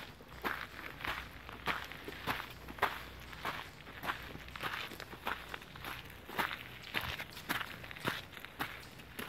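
Footsteps crunch steadily on dry leaves and twigs.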